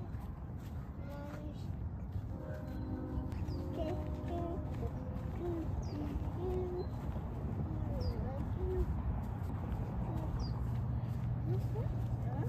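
A toddler sings softly in a high, wavering voice close by.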